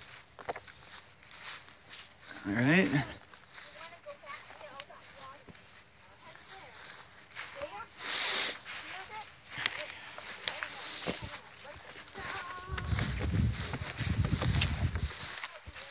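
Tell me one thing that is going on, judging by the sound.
Footsteps crunch through dry grass and snow.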